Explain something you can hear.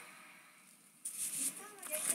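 A hand brushes against a soft mat.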